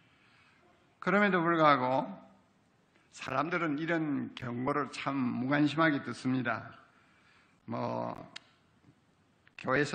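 An older man speaks slowly and solemnly through a microphone.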